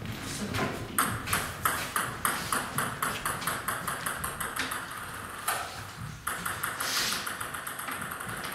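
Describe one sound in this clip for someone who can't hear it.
A table tennis ball bounces in quick, regular taps in a large, echoing hall.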